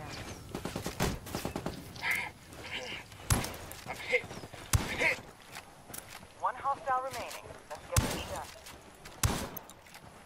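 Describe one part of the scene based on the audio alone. Gunshots crack in sharp single bursts.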